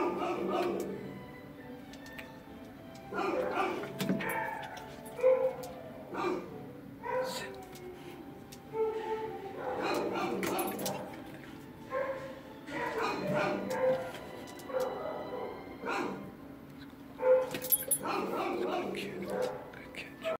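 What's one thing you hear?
A dog whines softly close by.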